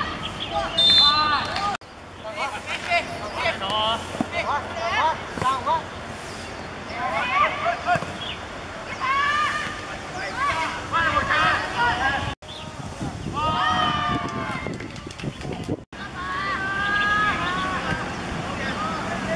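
Young boys shout to each other outdoors on an open field.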